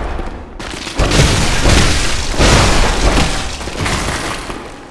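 A heavy blade slashes and strikes hard.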